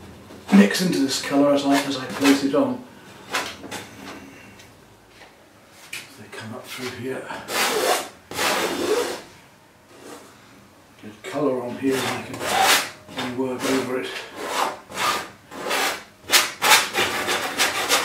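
A palette knife scrapes paint across a canvas.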